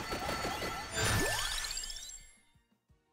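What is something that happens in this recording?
A bright video game chime rises.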